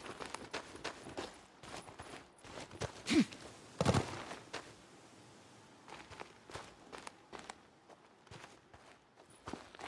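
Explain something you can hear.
Boots crunch on rocky dirt ground.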